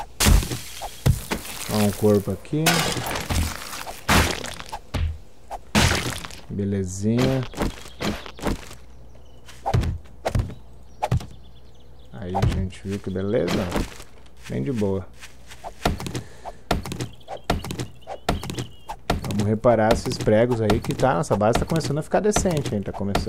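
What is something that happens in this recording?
An axe strikes wood in sharp, repeated knocks.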